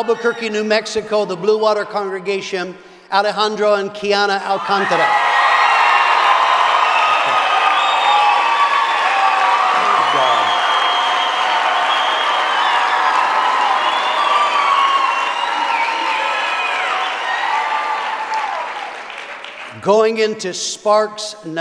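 A man speaks steadily into a microphone in a large hall.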